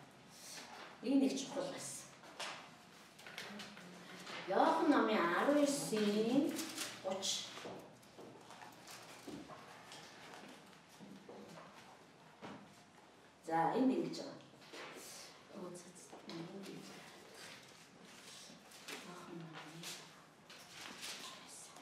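A middle-aged woman speaks calmly into a microphone, with pauses.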